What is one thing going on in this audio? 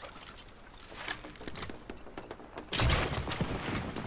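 A bow twangs as an arrow is loosed.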